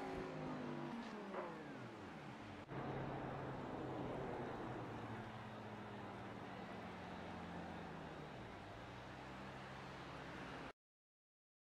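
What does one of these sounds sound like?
A racing car engine roars and shifts gears as the car speeds along.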